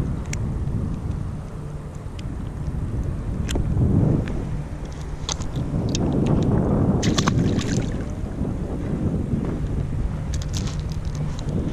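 Wind blows outdoors over open water.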